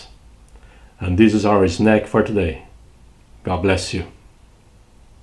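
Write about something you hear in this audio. An older man speaks calmly and clearly, close to a microphone.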